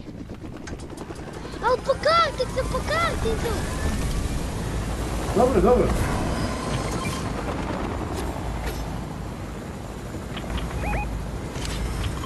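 A helicopter's rotors whir and thump loudly.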